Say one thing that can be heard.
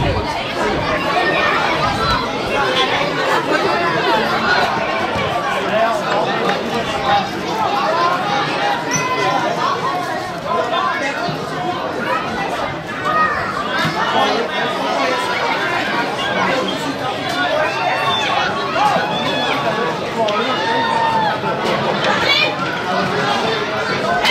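Children shout to each other across an open field.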